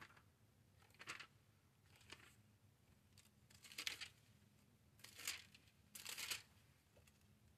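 Thin book pages rustle as they are turned.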